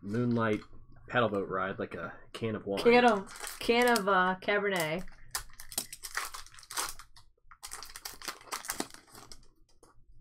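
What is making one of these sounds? Foil wrappers crinkle and rustle between fingers.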